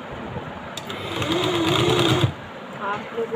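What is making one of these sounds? An industrial sewing machine stitches through cloth.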